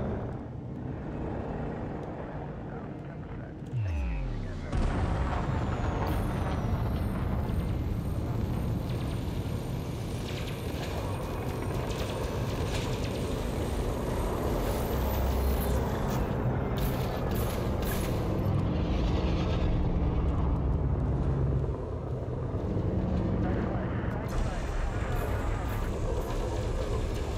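A spaceship engine hums and rumbles steadily.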